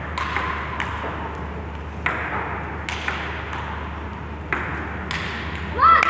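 A table tennis ball clicks sharply off paddles and the table in a lively rally.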